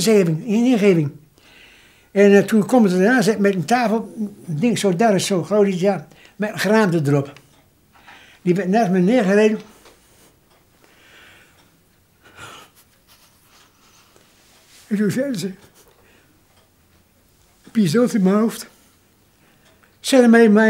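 An elderly man speaks calmly and close by, pausing often.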